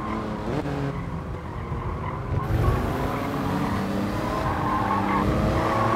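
Tyres squeal through tight corners.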